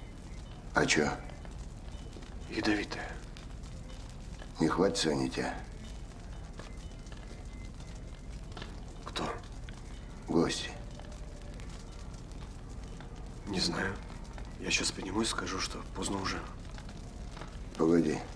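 A man speaks in a low, intense voice, close by.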